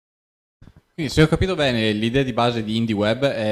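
A second man speaks into a microphone.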